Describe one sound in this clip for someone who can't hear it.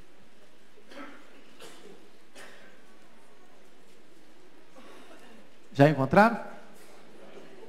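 A man preaches into a microphone in a large echoing hall.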